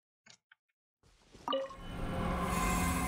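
Video game music and sound effects swell up and play loudly.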